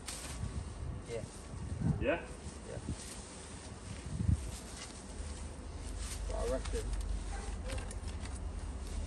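Leaves and soil rustle under boots and hands.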